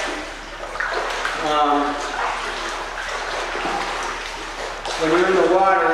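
Water splashes as a man wades through a pool.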